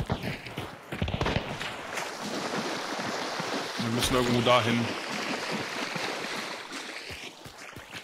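Water splashes as someone wades through a shallow swamp.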